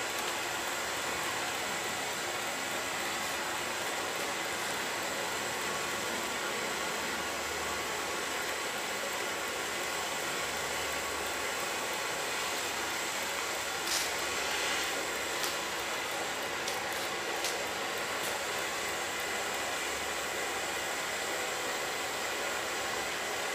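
A liquid pours steadily with a soft hiss.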